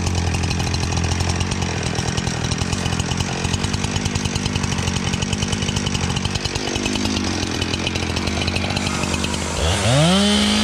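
A chainsaw idles with a rapid, rattling putter.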